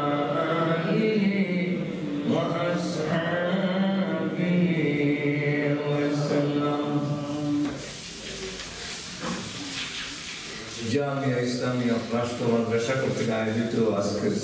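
A middle-aged man chants melodically into a microphone, heard through a loudspeaker in a hall.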